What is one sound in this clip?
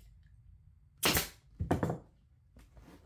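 A pneumatic staple gun fires staples into wood.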